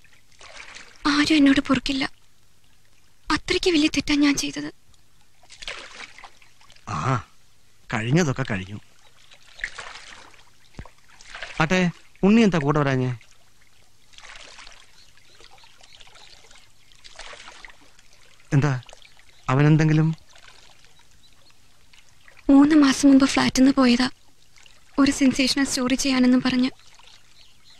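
A young woman speaks quietly and earnestly.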